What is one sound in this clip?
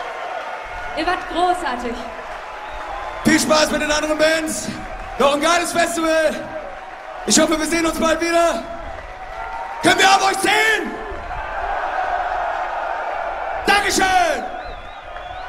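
A man shouts loudly through a microphone over loudspeakers.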